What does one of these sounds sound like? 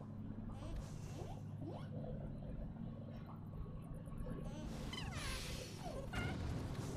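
A small flame flickers and crackles.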